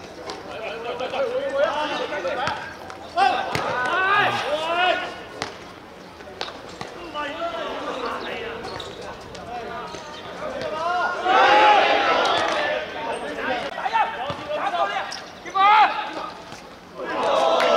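A football is kicked hard on an outdoor pitch.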